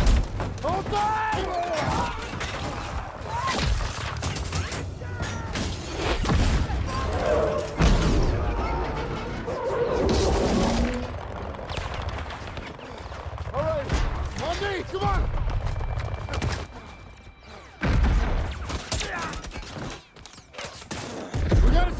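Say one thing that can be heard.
A man shouts orders.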